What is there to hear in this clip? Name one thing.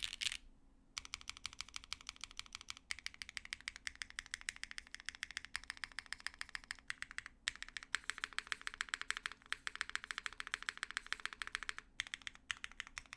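Keys on a mechanical keyboard click rapidly one by one.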